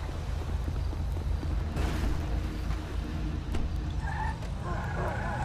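A car engine rumbles at idle.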